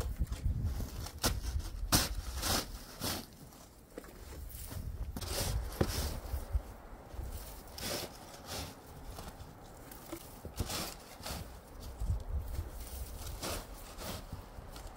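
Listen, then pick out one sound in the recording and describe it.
A metal shovel scrapes and crunches through packed snow.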